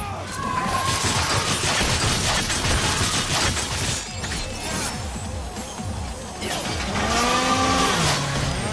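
Sword blows slash and clang in quick succession.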